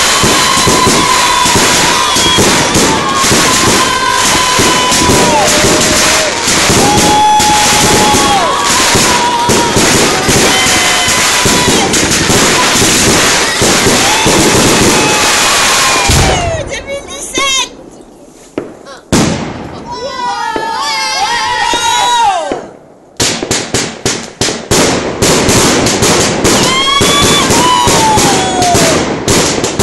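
Fireworks whistle with shrill, falling tones.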